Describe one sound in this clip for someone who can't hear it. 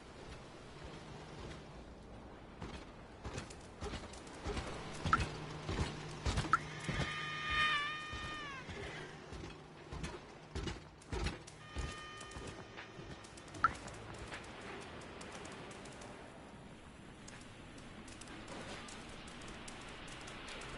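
A cat's paws patter softly on hard ground.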